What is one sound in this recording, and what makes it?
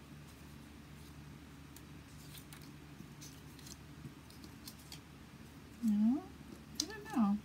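Paper strips rustle and tap softly as they are handled.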